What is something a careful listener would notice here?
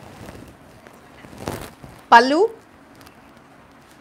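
Fabric rustles as a woman unfolds a sari.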